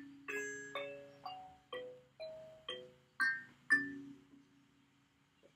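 Plucked metal tongues of a small thumb piano ring out in a short, gentle tune.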